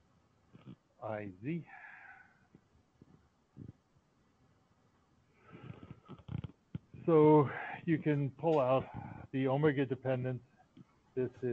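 An elderly man explains calmly, heard through an online call.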